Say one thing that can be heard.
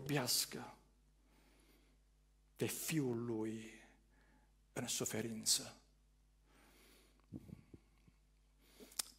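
A man speaks slowly and solemnly with long pauses, heard through a microphone.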